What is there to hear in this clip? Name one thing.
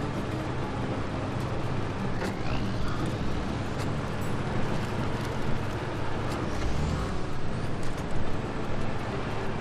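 Tyres churn and crunch through deep snow.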